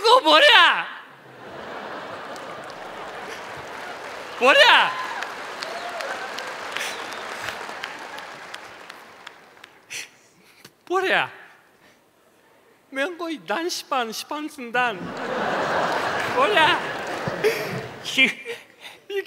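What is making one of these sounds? An audience laughs and applauds.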